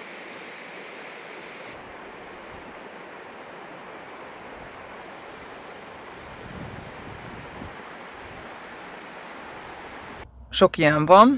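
A waterfall rushes and splashes steadily over rocks.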